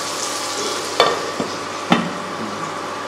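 A metal lid clinks onto a pan.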